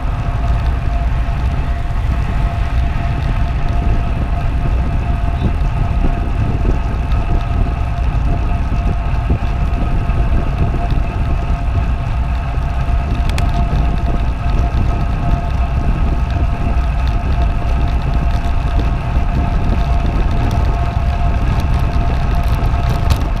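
Wind buffets loudly and steadily past a fast-moving bicycle.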